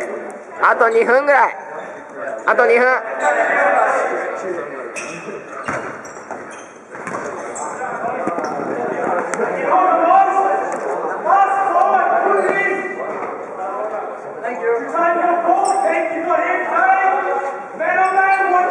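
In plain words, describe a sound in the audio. Boys shout and call to each other across a large echoing hall.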